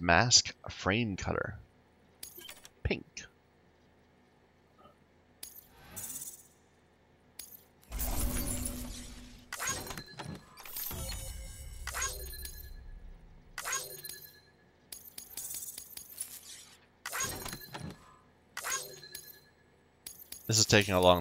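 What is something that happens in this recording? Short electronic chimes and whooshes sound as menu results pop up.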